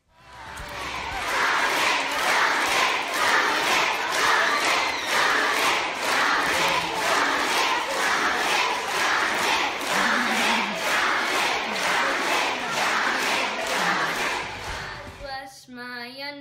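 A large crowd of children claps in rhythm in an echoing hall.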